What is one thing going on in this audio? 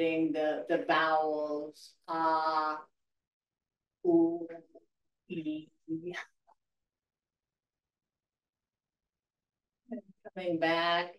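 An older woman speaks calmly and clearly into a microphone, with pauses.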